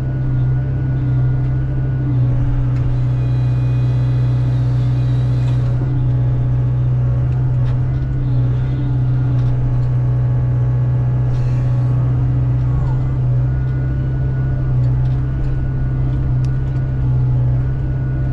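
Hydraulics whine as a grapple arm moves.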